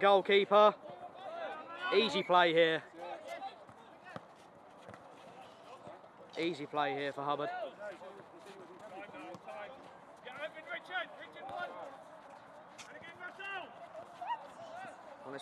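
A football is kicked on artificial turf.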